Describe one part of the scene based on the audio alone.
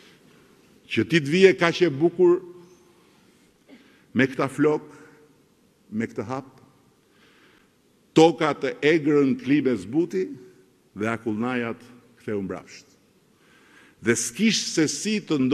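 A middle-aged man speaks forcefully into a microphone in a large hall.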